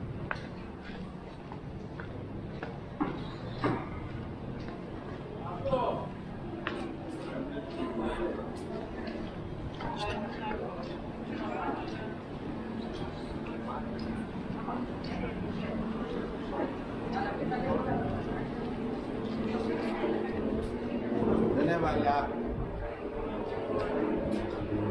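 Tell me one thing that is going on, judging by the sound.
Footsteps tap on a paved street.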